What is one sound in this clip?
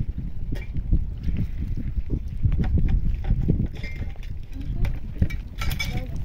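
Water pours from a jug and splashes onto rocks.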